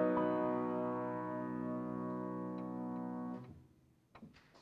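A piano plays a held chord that fades out.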